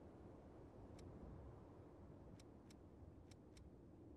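A game menu gives soft short ticks as the selection moves.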